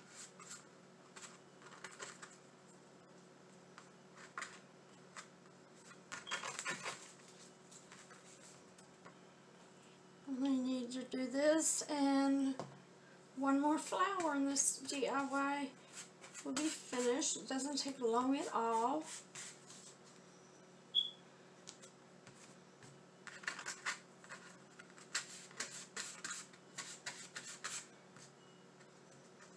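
A brush scrapes and swishes across a board.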